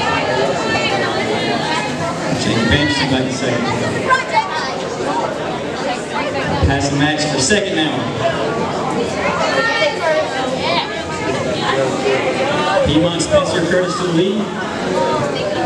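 Inline skate wheels roll fast across a wooden floor.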